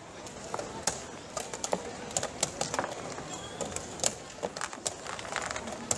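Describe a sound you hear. Wooden chess pieces knock against a board.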